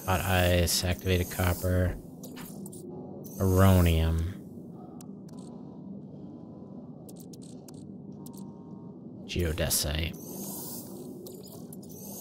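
Soft interface clicks tick as menu items are selected.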